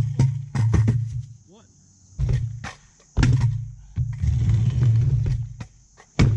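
Small hard wheels rumble over a concrete ramp in bursts.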